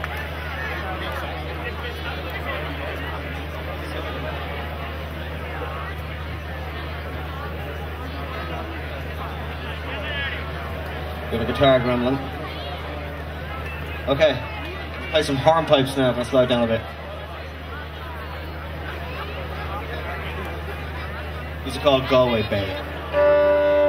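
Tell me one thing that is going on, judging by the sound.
A man speaks through loudspeakers.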